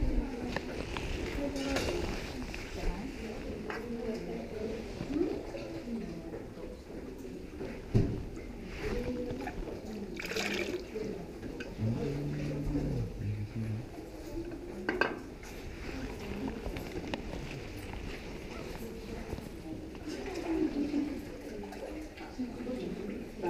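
Water trickles along a slatted channel.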